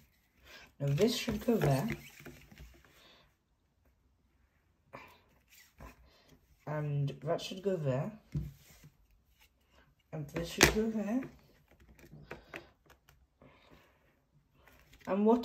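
Cardboard puzzle pieces tap and slide on a hard surface.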